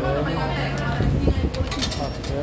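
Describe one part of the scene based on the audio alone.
A coin clinks as it drops into a coin slot.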